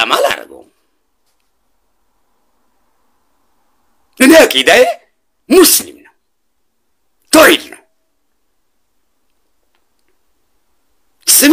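A man speaks close to a microphone in short bursts with pauses between.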